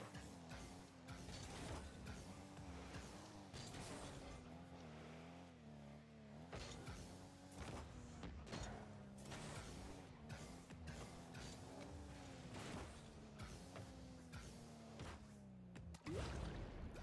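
A car engine hums and whines as it speeds up and slows down.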